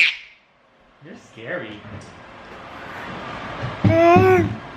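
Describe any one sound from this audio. A toddler girl makes loud, playful vocal sounds up close.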